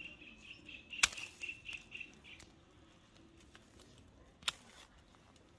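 Pruning shears snip through stems with sharp clicks.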